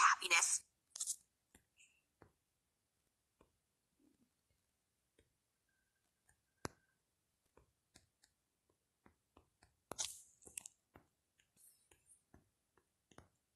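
Soft clicks of typing on a phone keyboard come now and then.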